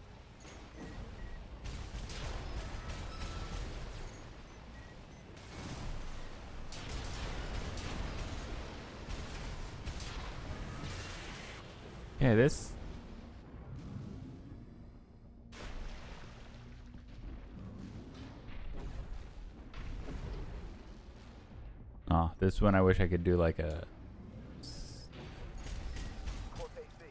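Mechanical thrusters roar.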